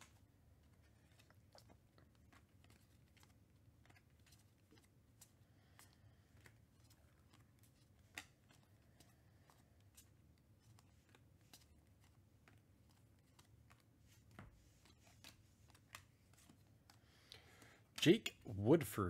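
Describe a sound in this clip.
Trading cards flick and slide against each other as they are shuffled through by hand.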